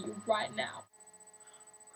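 A young woman speaks briefly and close by.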